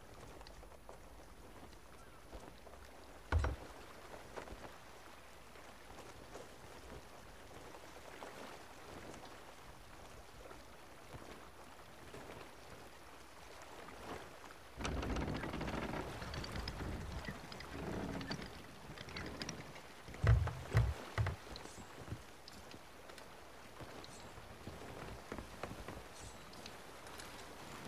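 Waves wash steadily against a wooden ship's hull.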